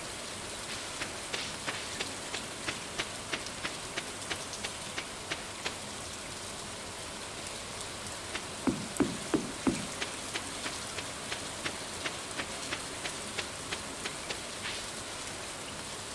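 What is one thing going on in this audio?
Footsteps patter quickly and evenly on a dirt path.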